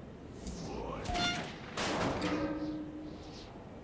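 A metal mechanism clanks and grinds.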